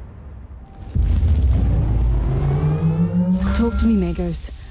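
Energy beams power up with a deep hum that rises in pitch.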